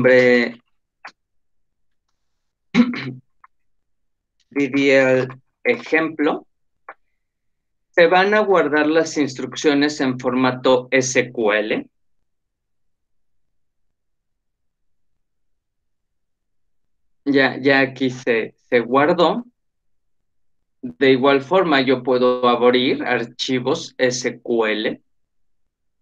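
A man speaks calmly over an online call, in bursts with pauses.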